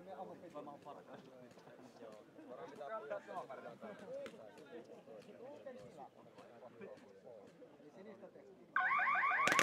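Several young men talk and call out to each other outdoors.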